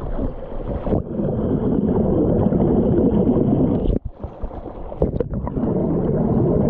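Water bubbles and churns, heard muffled from underwater.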